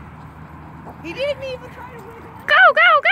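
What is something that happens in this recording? Dogs yelp and whine while playing.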